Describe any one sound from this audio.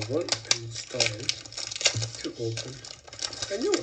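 Plastic wrapping crinkles and rustles.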